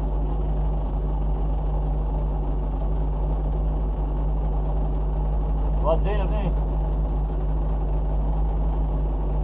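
A rally car engine idles with a steady low rumble close by.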